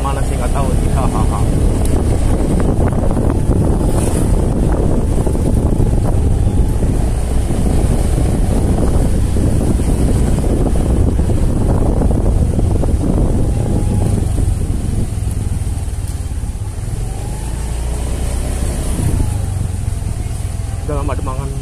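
Wind rumbles against a microphone on a moving motorcycle.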